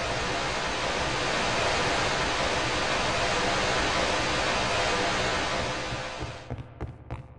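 Steam hisses.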